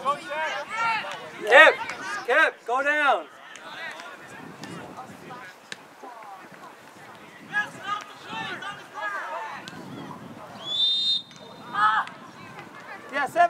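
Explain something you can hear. Young players shout to each other across an open field outdoors.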